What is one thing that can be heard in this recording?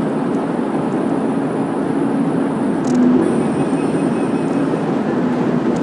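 A car engine hums steadily as tyres roll on the road, echoing inside a tunnel.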